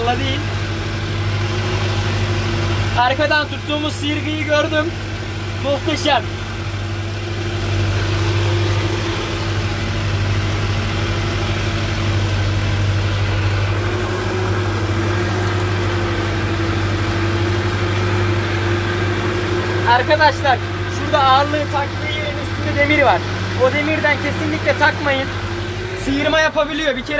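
A tractor engine rumbles steadily nearby at low speed.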